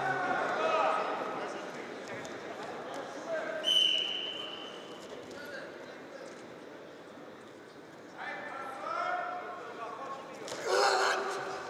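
Spectators call out and cheer in a large echoing hall.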